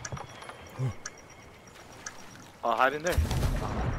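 Water splashes as someone wades through a pool.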